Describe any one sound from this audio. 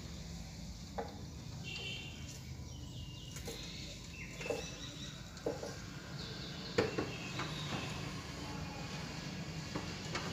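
A metal rod scrapes and taps at debris on the floor.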